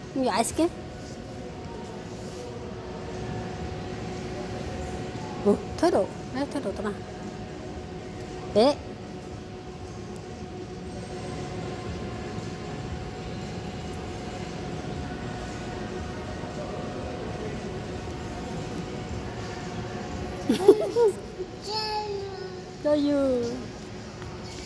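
A toddler squeals and babbles close by.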